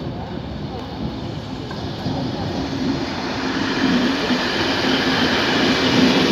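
A train rumbles past on the tracks, growing louder as it comes close.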